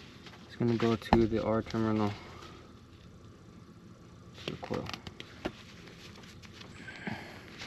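Stiff wires scrape and rustle as hands bend them.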